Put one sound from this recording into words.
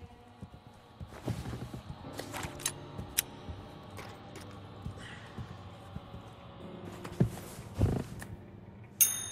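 Footsteps thud on a wooden floor indoors.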